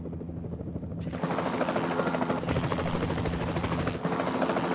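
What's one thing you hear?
A helicopter's rotor thrums steadily.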